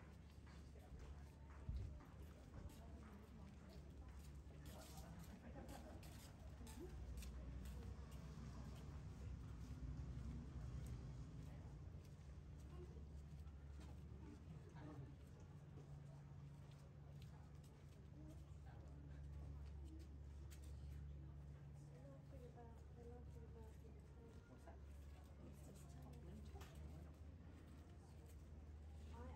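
Footsteps tap on a paved alley.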